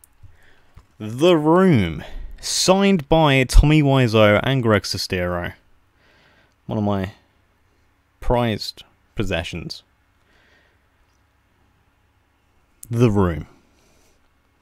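A young man speaks with animation close to a microphone, pausing between phrases.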